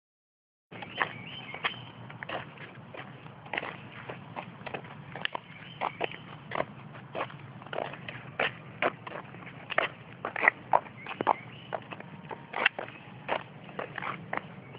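Footsteps tap and scuff on pavement outdoors.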